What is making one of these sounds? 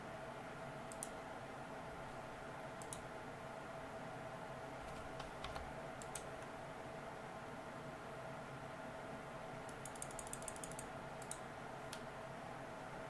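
Short, sharp game sound effects click and chime now and then.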